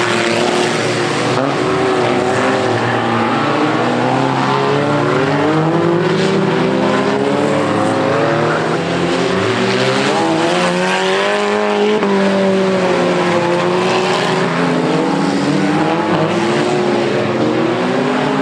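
Several car engines rev and roar loudly outdoors.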